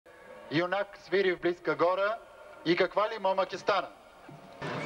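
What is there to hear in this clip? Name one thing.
A man reads out through a microphone.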